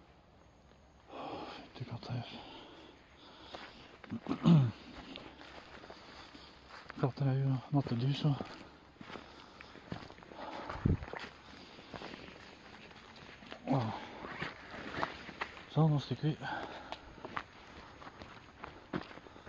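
Footsteps rustle through dry leaves and twigs.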